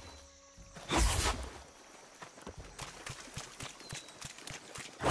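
Water splashes as feet run through it.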